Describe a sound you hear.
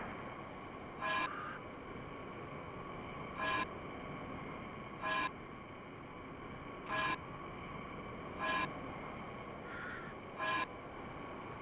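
A video game menu chimes as pages switch.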